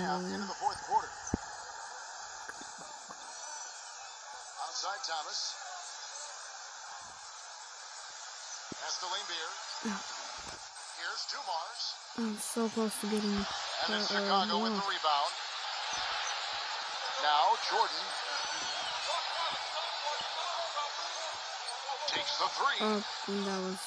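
A young boy talks close to a microphone.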